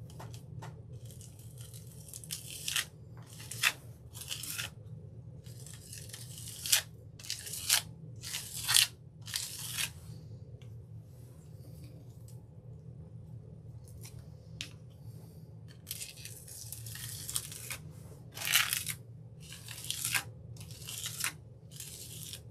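A sponge dabs and pats against a stencil in quick, soft bursts.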